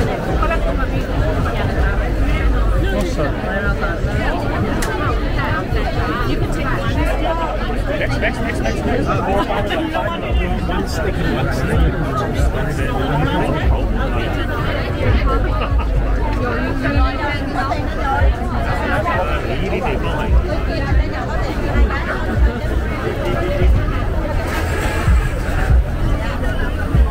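A large crowd of men and women chatters all around outdoors.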